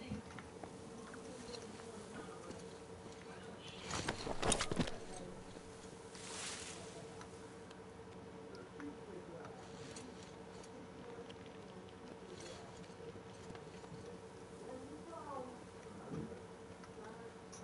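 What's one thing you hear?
A man speaks quietly into a headset microphone.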